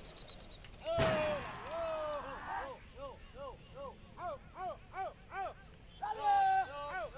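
A man shouts loudly again and again outdoors.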